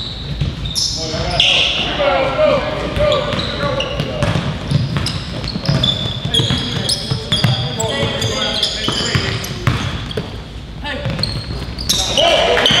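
Young men shout to each other in a large echoing gym.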